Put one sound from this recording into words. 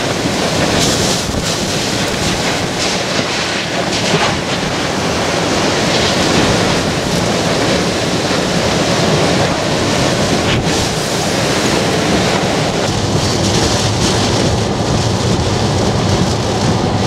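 Hurricane-force wind roars and buffets a car.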